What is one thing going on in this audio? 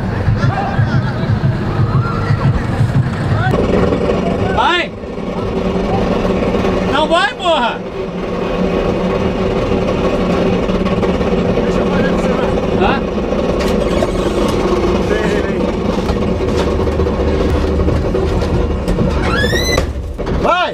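A car engine roars and revs loudly.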